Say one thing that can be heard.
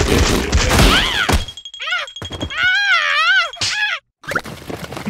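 A cartoon beetle shouts in a wavering, squeaky voice.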